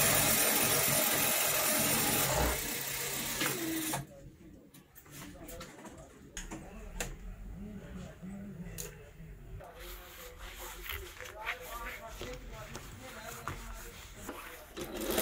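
A sewing machine whirs rapidly as it stitches.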